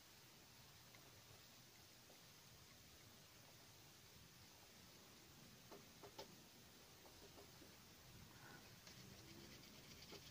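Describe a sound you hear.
Fingers press and rub soft clay close by.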